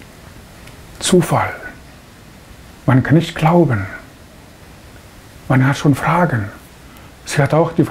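A man speaks calmly and slowly into a close microphone.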